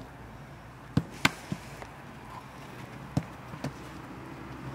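Footballs are kicked with sharp thuds.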